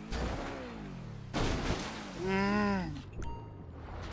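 A car crashes with a loud bang.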